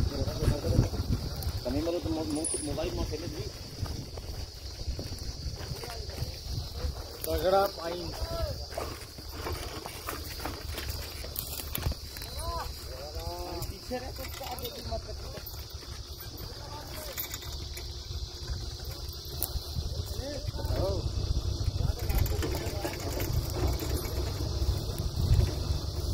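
Men talk in the distance outdoors.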